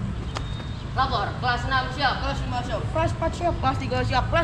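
Young men shout out in unison nearby.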